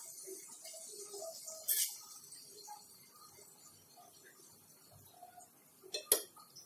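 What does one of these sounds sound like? A metal spoon scrapes and stirs food in a pan.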